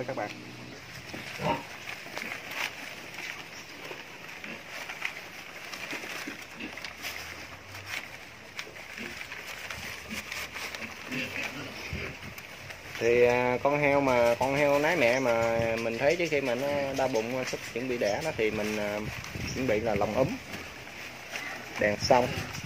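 Dry leaves rustle as piglets move about.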